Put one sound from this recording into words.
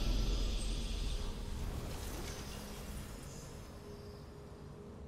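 A triumphant game victory fanfare rings out and fades.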